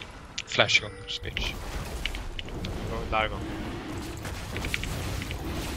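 Magic spell effects whoosh and crackle in a video game fight.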